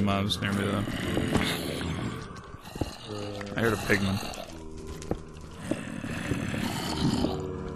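A pickaxe chips and breaks stone blocks.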